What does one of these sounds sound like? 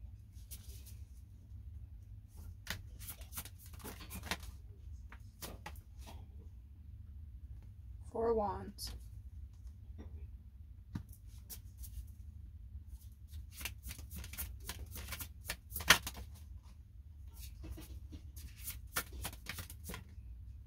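Cards shuffle and flick together in quick bursts, close by.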